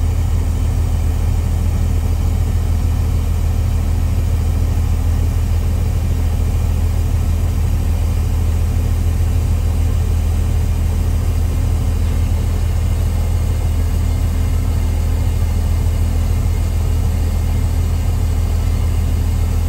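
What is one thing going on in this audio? A truck engine idles with a steady low rumble.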